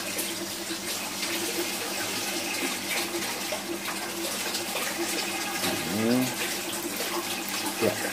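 Water sloshes in a plastic basin.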